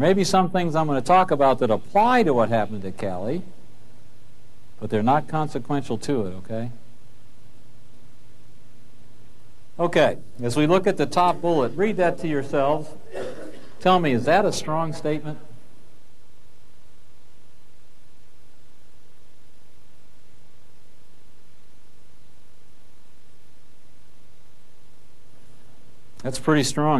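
A man lectures calmly through a microphone, pausing between phrases.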